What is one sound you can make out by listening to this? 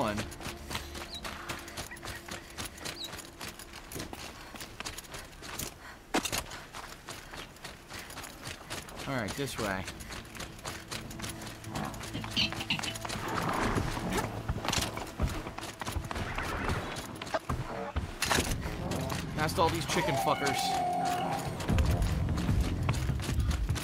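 Footsteps patter quickly over the ground.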